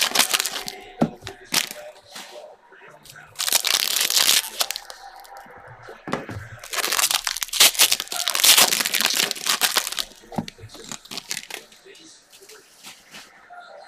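Card packs tap down on a table.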